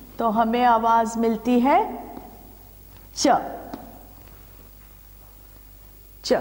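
A middle-aged woman speaks clearly and with expression, in a room with a slight echo.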